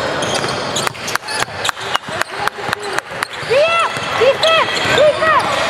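A basketball bounces repeatedly on a wooden floor.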